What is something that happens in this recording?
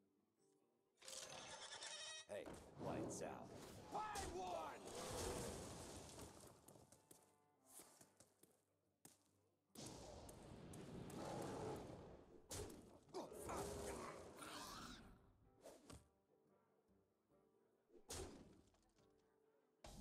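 Magical whooshes, chimes and crashes of a card game ring out as cards are played and attack.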